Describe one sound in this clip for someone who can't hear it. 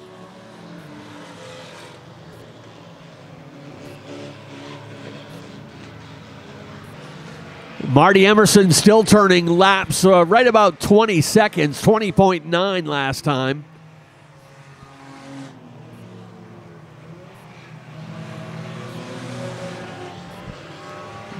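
Race car engines drone and roar in the distance.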